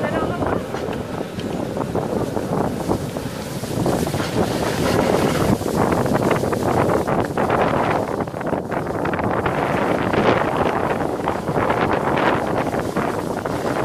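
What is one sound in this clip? Skis or a sled hiss and scrape over snow as they slide downhill.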